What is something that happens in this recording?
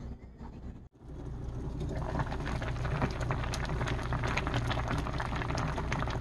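A pot of stew bubbles and simmers steadily.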